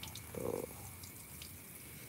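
Water trickles out of a plant pot and splashes onto the ground.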